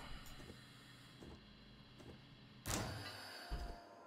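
A railway carriage couples onto another with a metallic clank.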